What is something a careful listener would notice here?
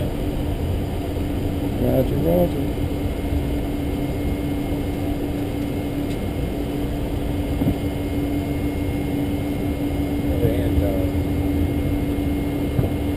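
Tyres rumble over the runway.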